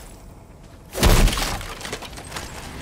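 A crate bursts apart with a loud crash.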